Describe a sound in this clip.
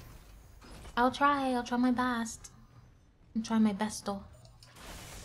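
A young woman speaks animatedly into a microphone.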